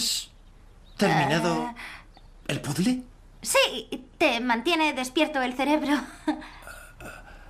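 A young man speaks tensely and close by.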